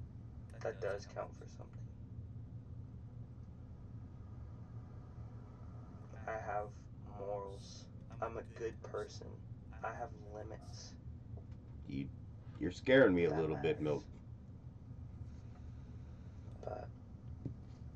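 A young man speaks quietly and calmly, close by, in bursts with pauses.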